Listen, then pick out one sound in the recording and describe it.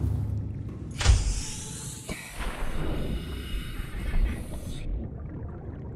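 Water rushes and bubbles all around, as if heard underwater.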